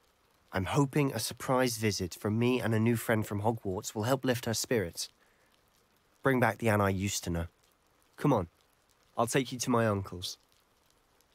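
A young man speaks calmly and with animation.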